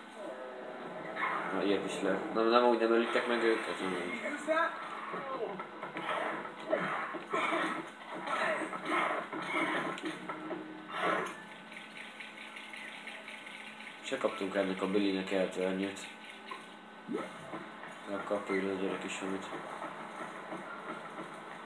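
Cartoonish game sound effects clatter and pop from a television speaker.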